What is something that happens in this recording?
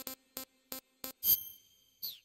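Short electronic menu beeps tick in quick succession.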